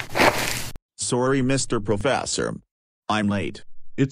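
A man speaks in a flat, synthetic voice.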